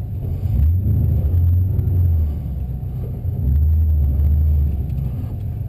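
A car engine rumbles loudly from inside the car, surging in bursts.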